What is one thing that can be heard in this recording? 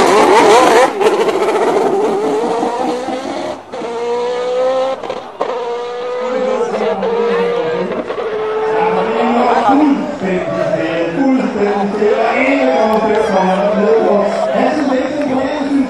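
A sports car engine roars as it accelerates away.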